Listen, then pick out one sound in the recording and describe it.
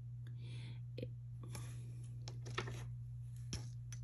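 A metal ring clicks down onto a table.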